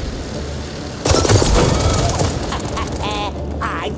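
Rapid gunfire crackles loudly.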